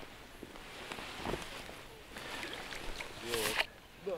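A fish splashes in the water close by.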